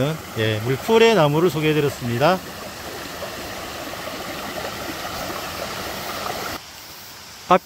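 A shallow stream gurgles over rocks nearby.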